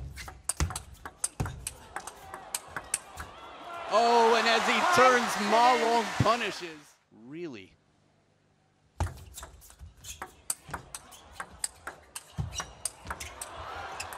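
A table tennis ball clicks back and forth between paddles and the table in a fast rally.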